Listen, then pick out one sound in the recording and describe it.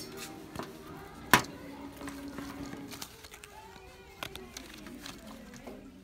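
A paper price tag rustles and crinkles as a hand handles it.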